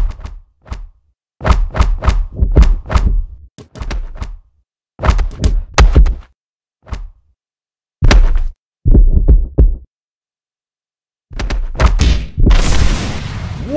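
Gloved punches thud in quick bursts.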